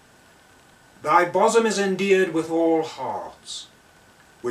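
A middle-aged man speaks calmly and clearly, close to a microphone.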